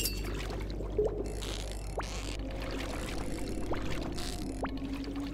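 A fishing reel clicks and whirs while a fish is reeled in.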